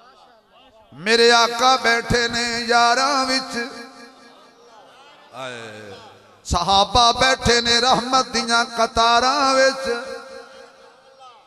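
A man chants loudly through a loudspeaker, with echo.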